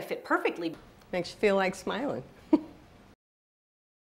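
An older woman speaks calmly and close.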